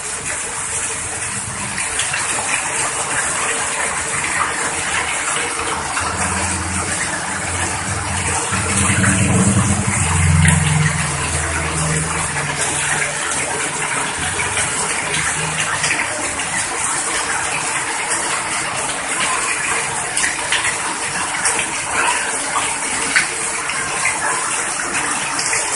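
Water splashes onto the ground.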